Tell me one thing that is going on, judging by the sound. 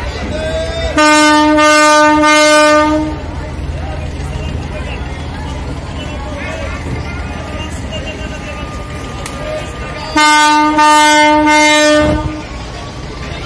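A ship's horn blasts loudly twice.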